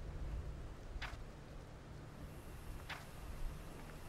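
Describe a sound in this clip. A short menu click sounds twice.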